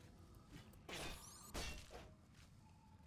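A sword strikes a crab with a sharp clash.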